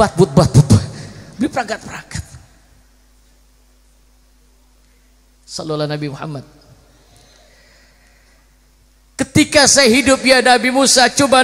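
A man chants with feeling through a microphone and loudspeakers.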